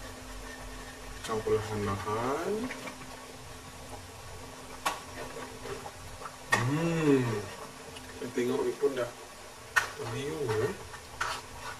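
A metal ladle clinks and scrapes against a pot.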